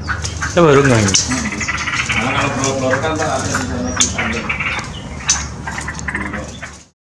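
Small birds chirp nearby.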